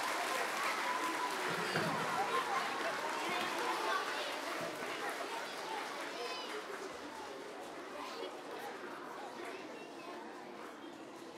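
Many children chatter and murmur in a large echoing hall.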